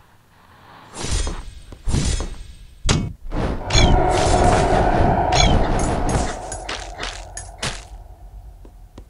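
Sword slashes whoosh and strike enemies in a video game.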